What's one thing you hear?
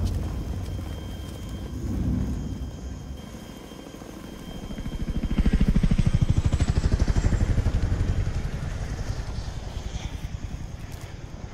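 A helicopter's rotor thumps loudly overhead, then fades as it flies away.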